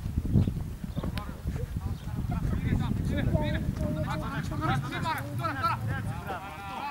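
Young men call out across an open field.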